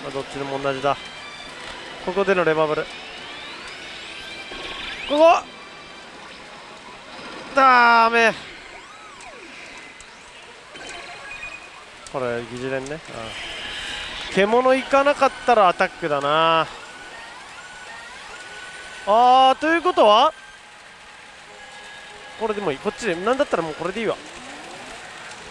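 A pachinko machine plays electronic jingles and sound effects.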